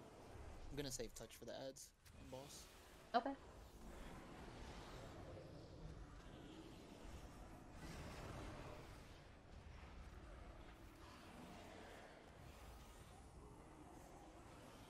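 Magic effects whoosh and crackle.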